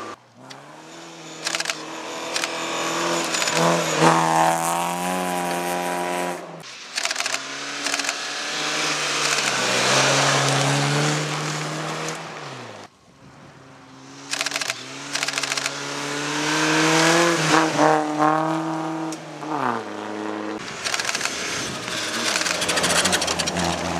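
Rally car engines roar loudly.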